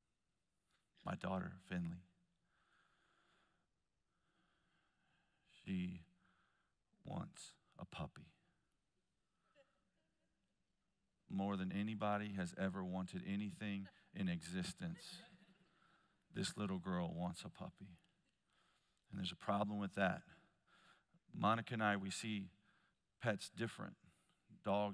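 A man speaks calmly through a headset microphone, pausing often.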